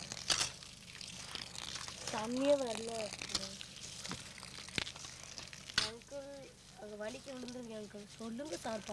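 Hands squish and stir wet grain.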